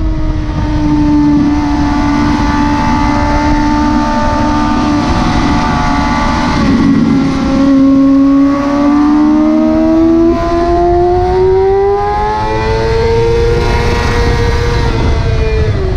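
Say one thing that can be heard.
Wind rushes hard past the rider.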